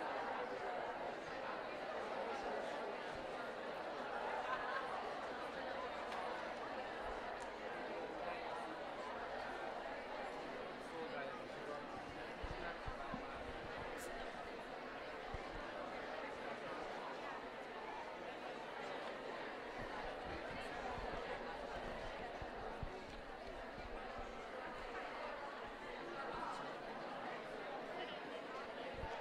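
A young woman speaks calmly through a microphone and loudspeaker in a large echoing space.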